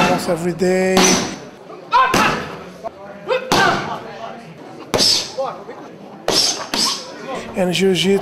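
Kicks thud hard against a padded shield.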